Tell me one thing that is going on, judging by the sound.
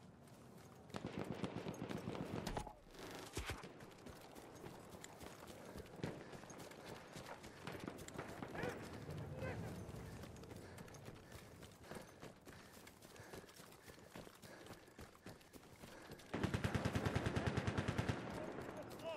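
A submachine gun fires in rapid bursts close by.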